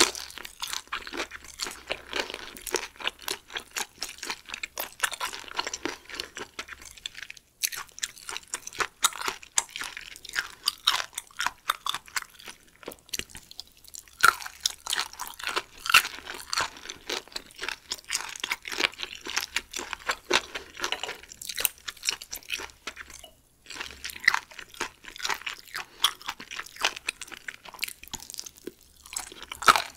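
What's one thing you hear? A young woman chews food wetly and close to a microphone.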